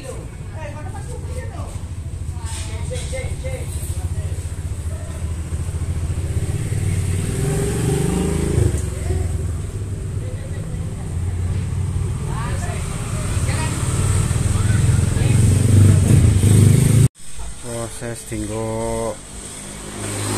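Several men talk nearby outdoors.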